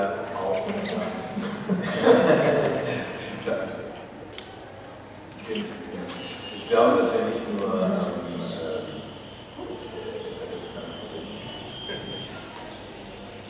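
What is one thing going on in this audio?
A man speaks with animation through a microphone in a large echoing room.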